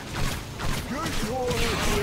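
Magic bolts zap and whoosh as they fire.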